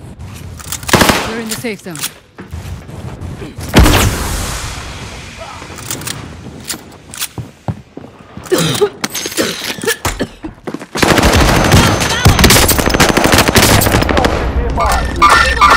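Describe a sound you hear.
Gunshots fire in quick bursts, loud and close.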